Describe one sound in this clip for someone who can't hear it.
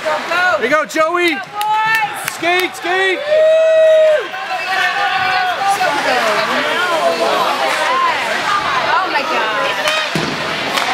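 Spectators shout and cheer in an echoing arena.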